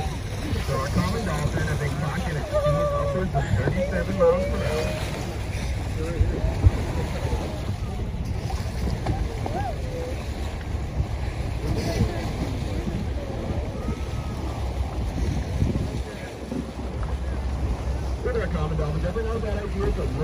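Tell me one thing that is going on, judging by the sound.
Water rushes and churns past a moving boat's hull.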